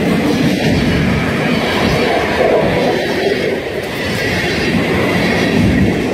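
A freight train rumbles and clanks loudly past close by.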